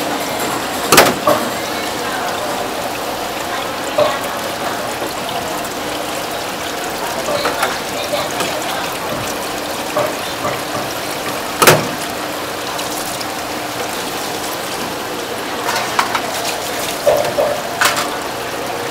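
Crab shells clatter and knock against the metal sink.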